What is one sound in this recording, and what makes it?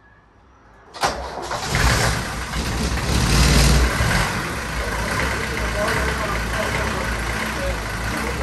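A van engine starts up and rumbles loudly at idle.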